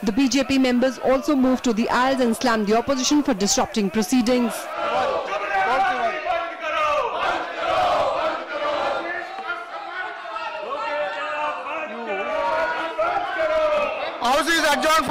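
An elderly man speaks firmly into a microphone.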